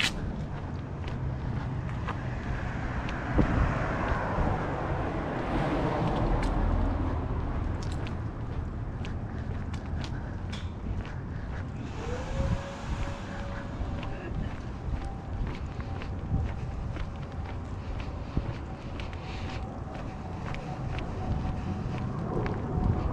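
Footsteps tap steadily on a concrete pavement.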